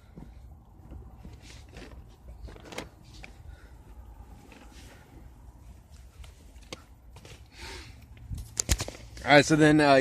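Fabric rustles and crinkles close by.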